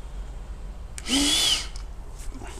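A man blows a short, hard breath into a tube.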